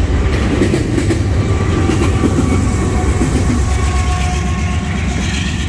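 A diesel locomotive rumbles past close by.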